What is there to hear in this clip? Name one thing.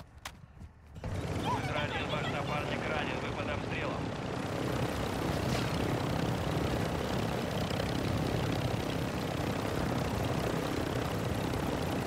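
A helicopter's rotor and engine roar steadily.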